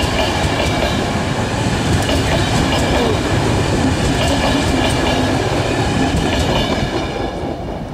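A passenger train rumbles past close by and fades.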